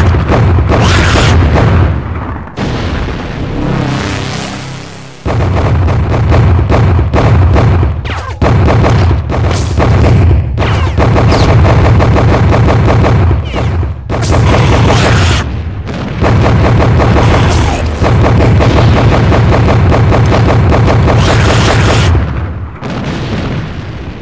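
Rapid gunfire rattles without a break.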